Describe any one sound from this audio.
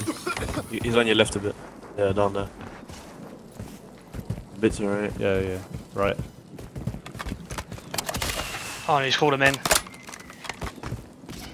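Footsteps crunch over dirt and rock.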